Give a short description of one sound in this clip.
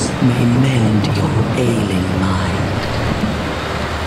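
Rain patters onto a wet surface.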